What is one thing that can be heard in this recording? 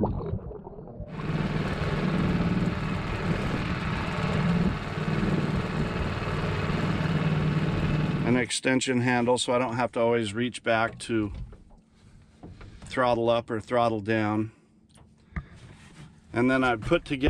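An outboard motor drones steadily over splashing water.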